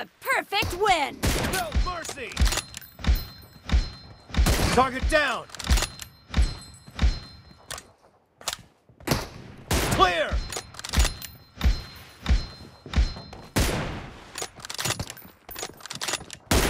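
Rifle shots fire in quick bursts, loud and close.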